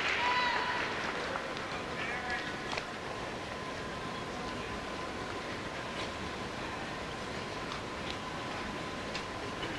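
A crowd in a large indoor hall murmurs steadily.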